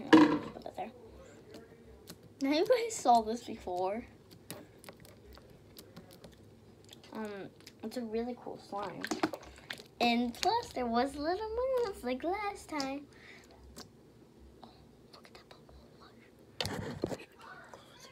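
Soft slime squishes and pops under fingers.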